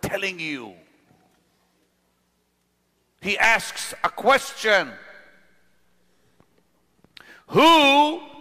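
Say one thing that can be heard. A middle-aged man preaches with animation through a microphone, in bursts with pauses.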